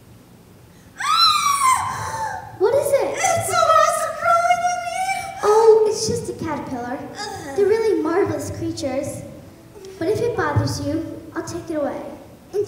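A woman speaks with animation, in a theatrical voice.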